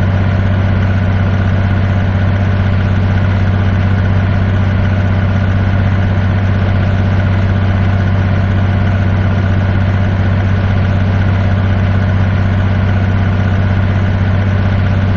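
A truck's diesel engine drones steadily.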